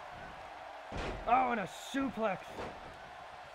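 A body slams heavily onto a wrestling ring mat.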